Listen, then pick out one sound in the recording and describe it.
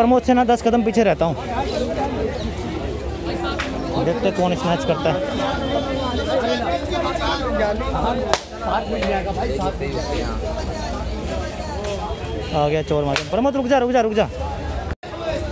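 A crowd of men chatter and call out nearby, outdoors.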